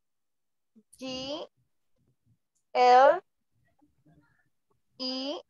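A young woman speaks in short phrases over an online call.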